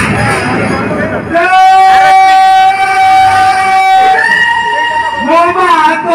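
A woman sings loudly through loudspeakers, holding long notes.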